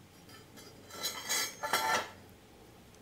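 Two square steel tubes knock and scrape against each other.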